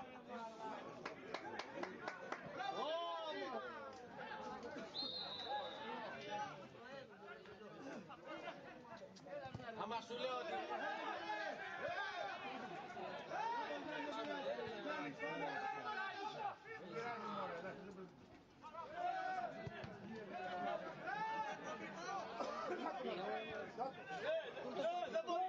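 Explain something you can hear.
Men shout and call out nearby outdoors.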